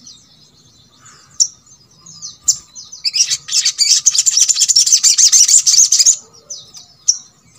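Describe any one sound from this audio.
A small bird sings a fast, high, chirping song close by.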